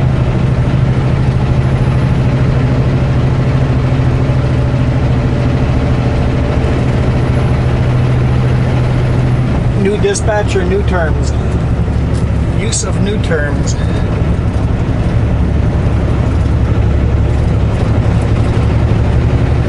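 Tyres roll and rumble on the road.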